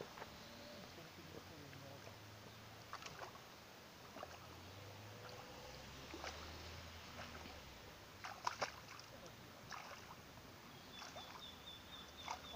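A man wades through shallow water, splashing.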